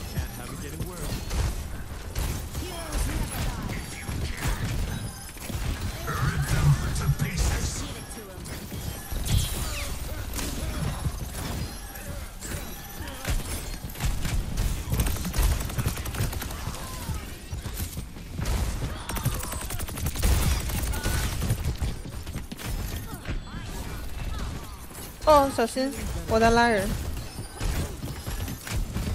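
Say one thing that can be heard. Gunfire and blasts crackle rapidly in a video game.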